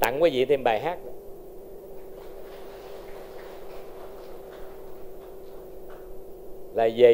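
A crowd applauds in soft, scattered claps.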